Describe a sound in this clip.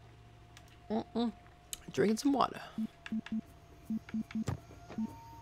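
Short electronic menu beeps sound.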